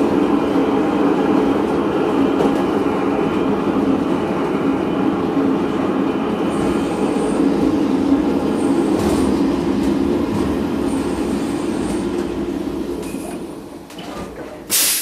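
A train rumbles steadily along the rails, slowing to a stop.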